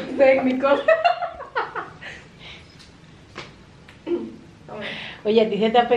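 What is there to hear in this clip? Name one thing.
A woman laughs loudly close by.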